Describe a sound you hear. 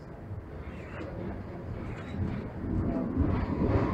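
Another tram rumbles past close by.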